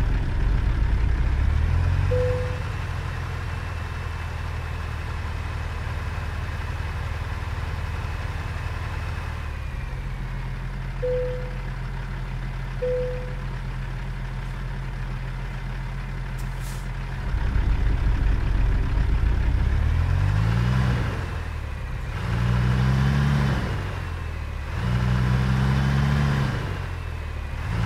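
A truck engine rumbles steadily, then revs up and down through the gears.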